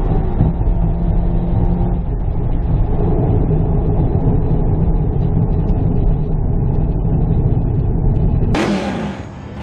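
Road noise hums from inside a moving car.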